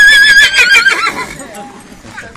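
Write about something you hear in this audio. A horse whinnies loudly nearby.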